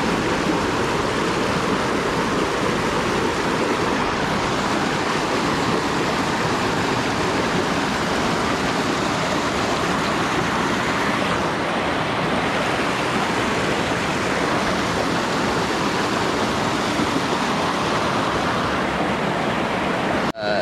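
A mountain stream rushes loudly over rocks close by.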